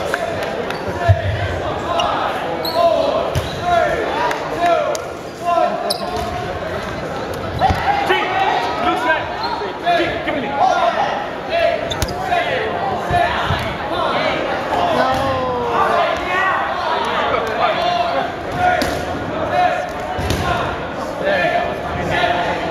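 A crowd of young people shouts and cheers throughout in a large echoing hall.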